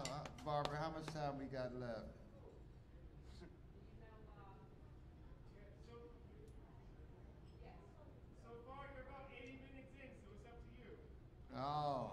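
A small jazz band plays.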